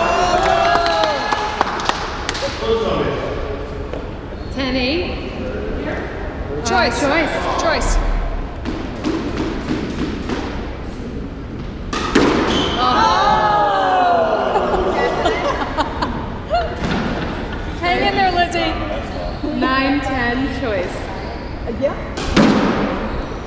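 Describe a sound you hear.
A squash ball smacks off the court walls.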